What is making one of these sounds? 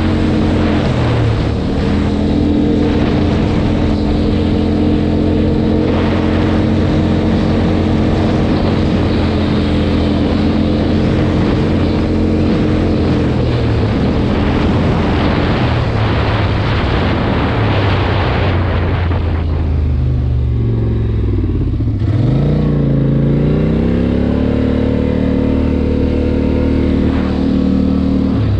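Tyres crunch over a rough road.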